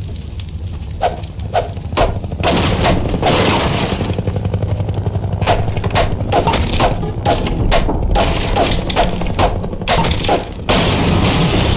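A crowbar bangs repeatedly against wooden boards.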